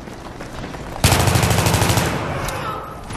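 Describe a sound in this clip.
A rifle fires a rapid burst of shots that echo.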